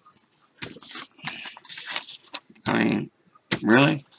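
Paper cards rustle as they are handled.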